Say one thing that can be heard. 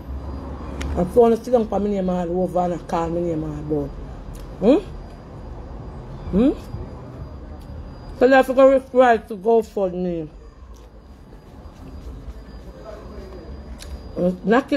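A woman speaks close to a microphone, expressively and with animation.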